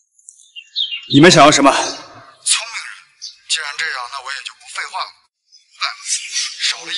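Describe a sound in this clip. A young man speaks tensely into a phone, close by.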